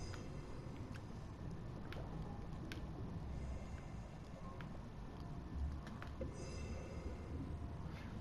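Air bubbles gurgle and rise underwater.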